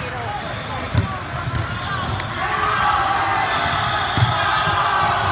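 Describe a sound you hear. A volleyball is struck with a loud slap.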